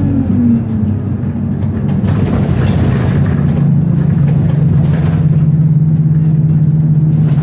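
A vehicle engine hums steadily from inside a moving car.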